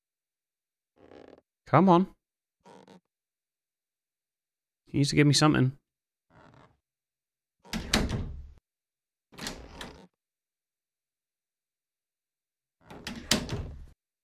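A man speaks in short bursts into a close microphone.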